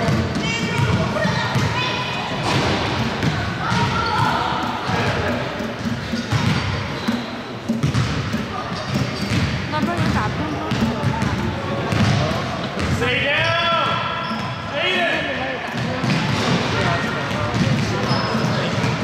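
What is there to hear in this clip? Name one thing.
Children shout and call out across the hall.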